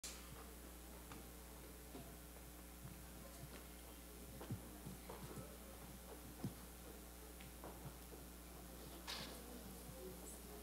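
A crowd murmurs and shuffles about.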